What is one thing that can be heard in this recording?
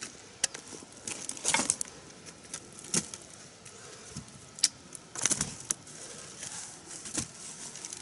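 Dry stalks and leaves rustle underfoot.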